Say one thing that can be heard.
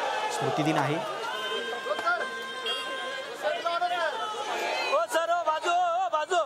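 A crowd of men shout and chant loudly nearby.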